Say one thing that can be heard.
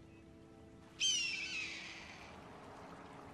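A bird calls once overhead.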